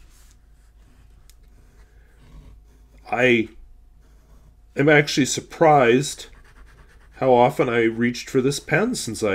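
A fountain pen nib scratches softly across paper.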